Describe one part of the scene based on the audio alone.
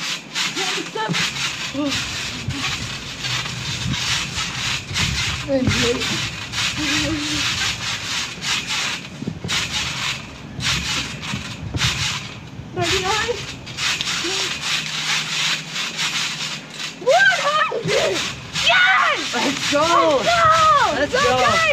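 A trampoline mat thumps and its springs creak as children bounce.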